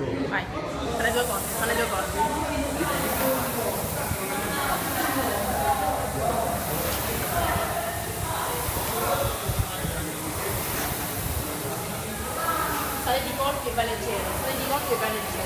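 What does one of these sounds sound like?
Rowing machine flywheels whir steadily in the background.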